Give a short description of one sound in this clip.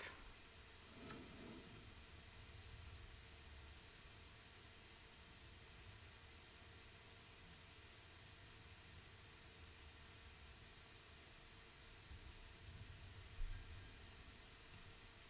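A young man speaks quietly and calmly into a close microphone.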